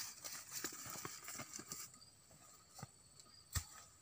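Footsteps rustle through dry grass and leaves.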